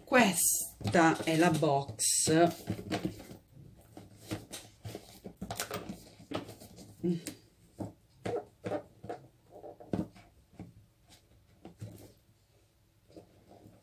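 Paper rustles and crinkles as a box is handled.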